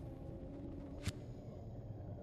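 A short menu click sounds once.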